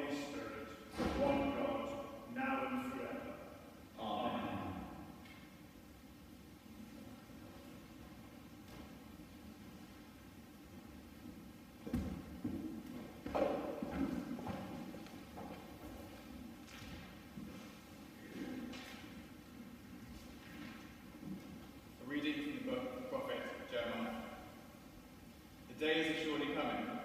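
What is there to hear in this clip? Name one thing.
An organ plays in a large echoing hall.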